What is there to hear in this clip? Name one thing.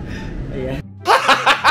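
A young man laughs loudly and heartily.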